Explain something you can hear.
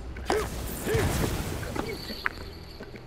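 A magical sword slash whooshes and crackles.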